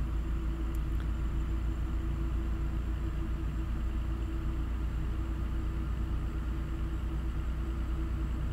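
A truck engine drones steadily at low speed.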